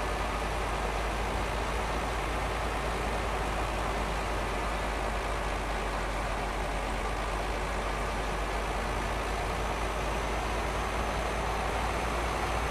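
A bus engine hums steadily as it drives along a road.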